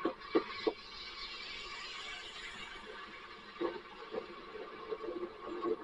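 A car drives past close by on a wet street.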